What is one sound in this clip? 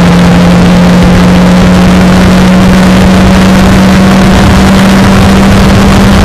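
Wind buffets an open cockpit at speed.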